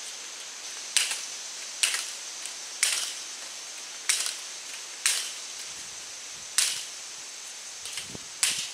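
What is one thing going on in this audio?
Sharp clicks ring out at intervals against wood.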